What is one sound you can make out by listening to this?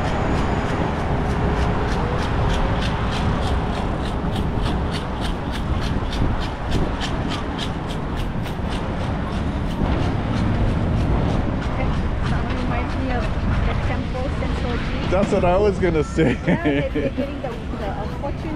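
A crowd of people chatters outdoors in the distance.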